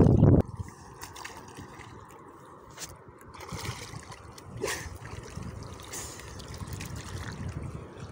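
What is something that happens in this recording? Water splashes and laps against a small boat close by.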